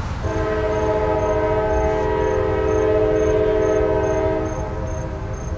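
A train horn blares loudly and steadily.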